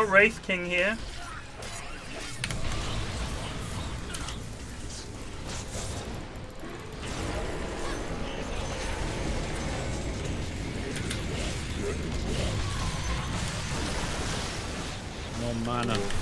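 Battle sound effects from a video game crash and whoosh.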